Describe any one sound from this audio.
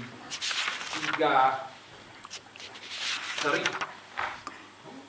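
A young man speaks calmly and formally into a microphone.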